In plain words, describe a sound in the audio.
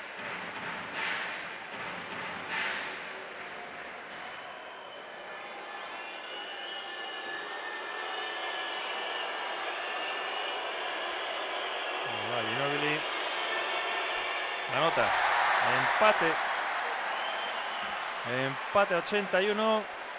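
A large crowd murmurs and whistles in an echoing arena.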